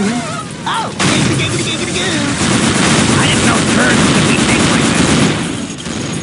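An energy weapon crackles and hums as it fires.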